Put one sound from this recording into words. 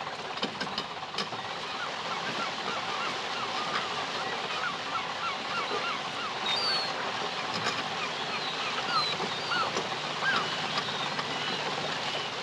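Water splashes and churns around a truck wheel.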